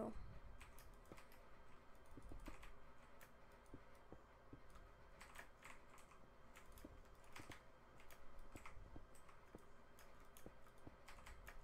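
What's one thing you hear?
Game blocks are placed with soft, quick clicking thuds.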